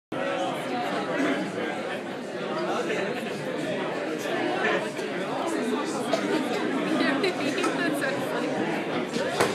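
A drummer plays a drum kit loudly.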